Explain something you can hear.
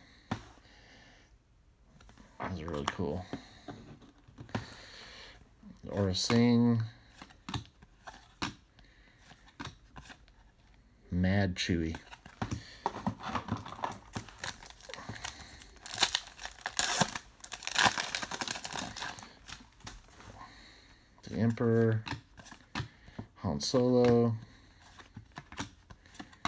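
Trading cards slide and flick against each other as they are shuffled by hand.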